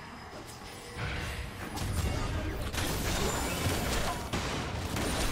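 A deep magical rumble swells as a dark spell bursts.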